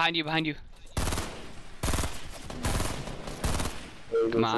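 A rifle fires a series of loud shots.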